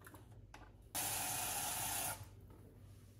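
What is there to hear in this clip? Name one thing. Water runs from a tap into a sink.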